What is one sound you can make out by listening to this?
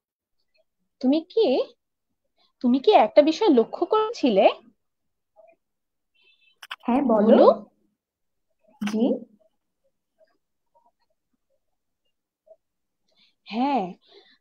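A young woman reads aloud in short phrases through an online call.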